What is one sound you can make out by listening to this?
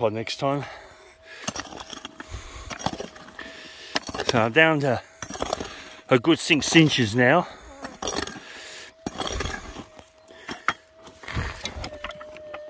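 A pick digs and scrapes into dry soil.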